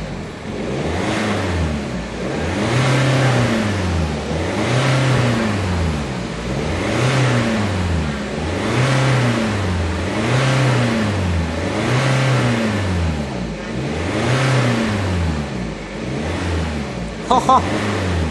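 A car's engine idles with a deep, burbling exhaust rumble that rises and falls in a steady rhythm.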